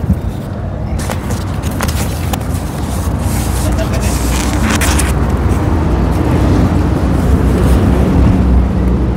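A paper plate rustles and crinkles as food is handled.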